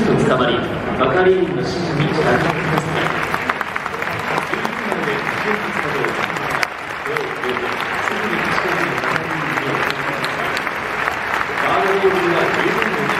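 A crowd of spectators chatters and cheers nearby in an open stadium.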